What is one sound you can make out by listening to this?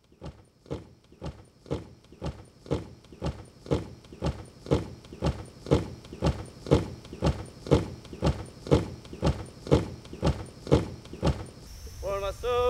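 Boots march in a steady rhythm on gravel.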